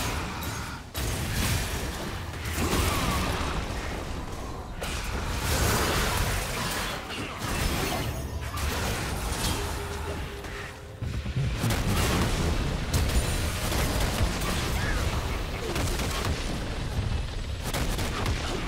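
Magic blasts and sword strikes clash in a fast fight.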